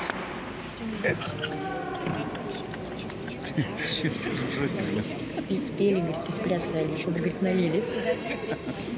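A man speaks over a loudspeaker in a large echoing hall.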